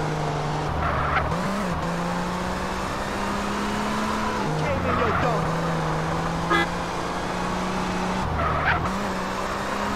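Tyres screech on asphalt as a car turns sharply.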